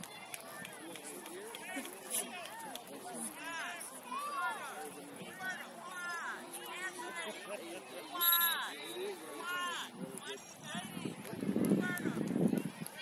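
Young players call out to each other faintly across an open field.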